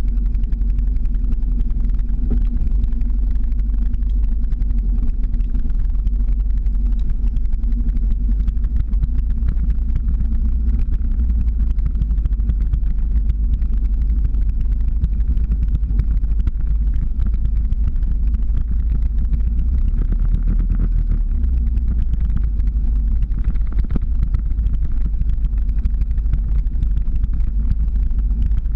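Wind buffets the microphone throughout.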